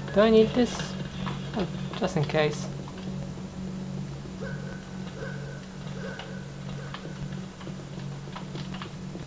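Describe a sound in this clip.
Keys on a computer keyboard click and tap.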